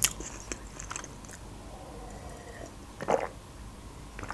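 A young woman sips water and gulps.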